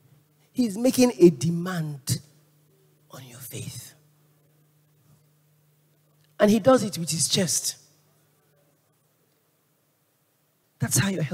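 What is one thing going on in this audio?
A woman speaks with animation into a microphone, in bursts with pauses, amplified in a large hall.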